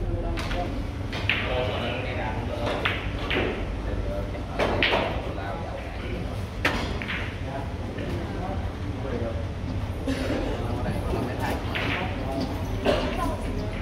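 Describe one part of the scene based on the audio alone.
Men talk casually in the background of a large room.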